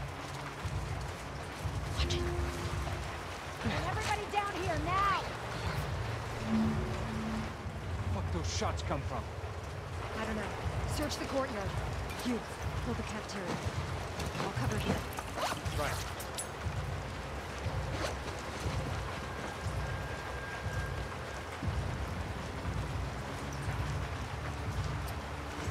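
Tall grass rustles as someone creeps through it.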